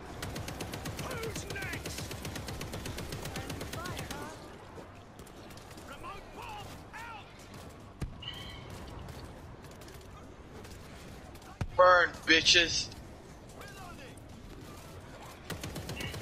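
Zombies screech and groan nearby.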